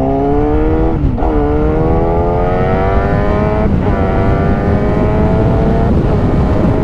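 A motorcycle engine dips briefly at each gear change.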